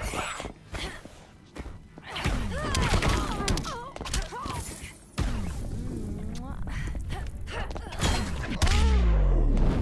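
Punches and kicks land with sharp impact thuds.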